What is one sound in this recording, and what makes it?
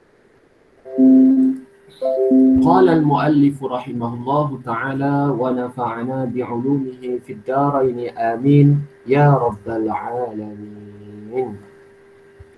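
A man speaks steadily through an online call.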